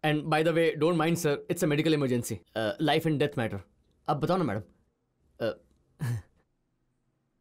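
A middle-aged man speaks in a tearful, emotional voice, close by.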